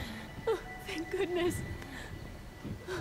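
A young woman speaks with relief, close by.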